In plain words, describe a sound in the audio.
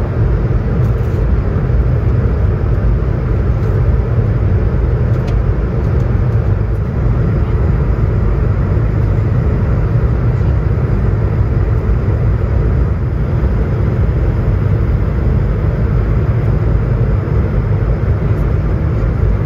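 An aircraft engine drones with a steady low roar inside the cabin.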